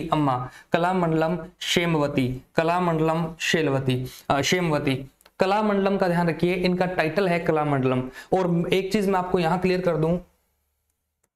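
A man lectures with animation into a close microphone.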